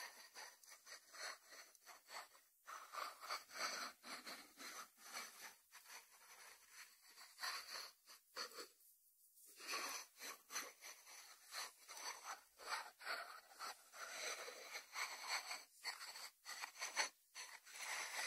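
Fingertips tap and scratch on a ceramic lid.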